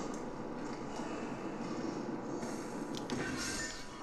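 Metal rungs clank as a figure climbs a ladder.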